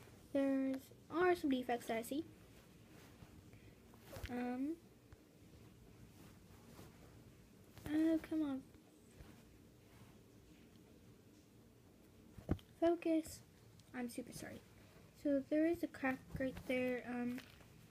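A rubber squeaky toy squeals in short bursts as it is squeezed.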